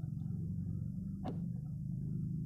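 A test lead clicks into a socket.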